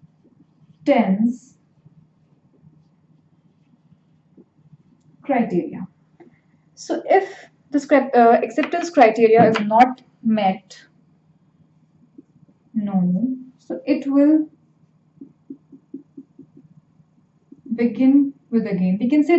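A young woman speaks calmly and clearly into a nearby microphone, in short phrases with pauses.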